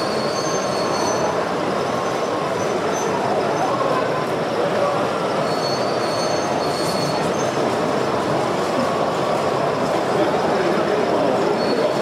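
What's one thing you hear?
A model train rumbles and clatters steadily along the rails.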